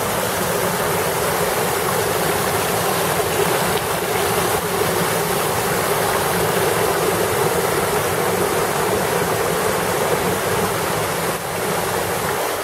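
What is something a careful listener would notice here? A mountain stream rushes and splashes over rocks.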